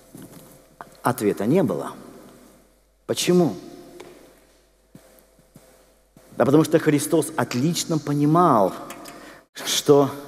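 A man speaks with animation through a microphone and loudspeakers in a large echoing hall.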